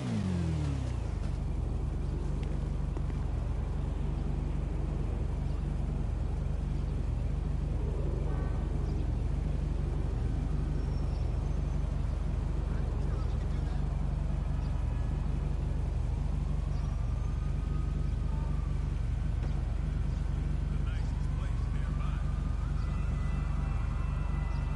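A motorcycle engine idles steadily nearby.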